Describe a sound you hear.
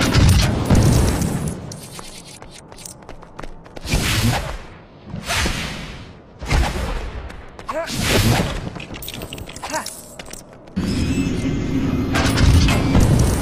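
Small coins scatter and jingle.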